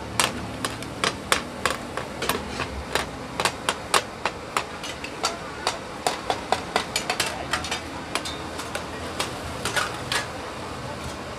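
Metal ladles tap and scrape against hot pans in quick clinks.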